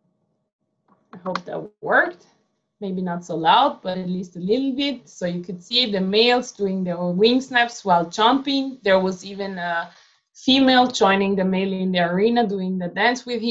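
A woman speaks calmly through an online call.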